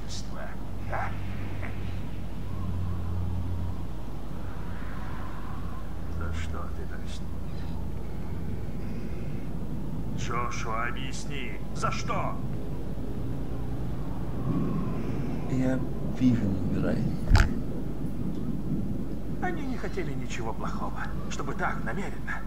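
A middle-aged man speaks tensely and emotionally, close by.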